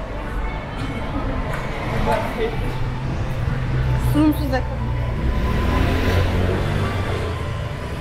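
Young women and men passing by talk in murmurs nearby.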